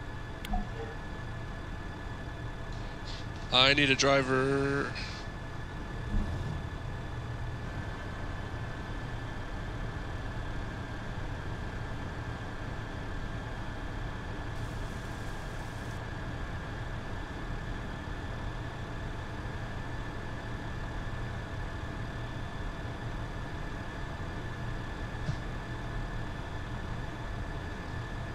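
A tank engine rumbles steadily at idle.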